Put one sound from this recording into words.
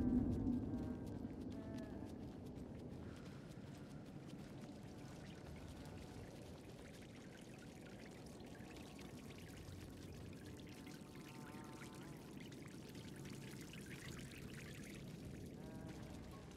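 A young woman hums softly to herself.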